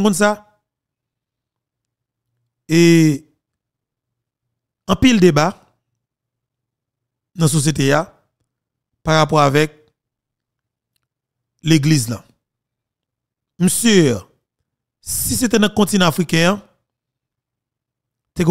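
A man speaks calmly into a close microphone, in short phrases with pauses between them.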